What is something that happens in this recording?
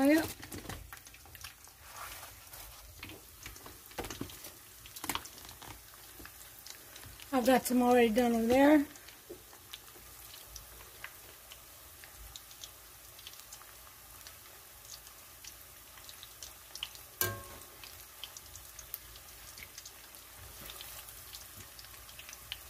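Hot oil sizzles and crackles steadily in a frying pan.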